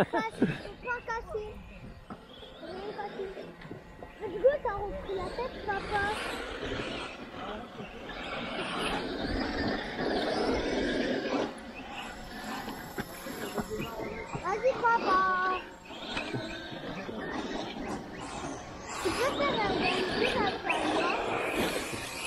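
Small electric motors whine and rev as toy cars race on a dirt track.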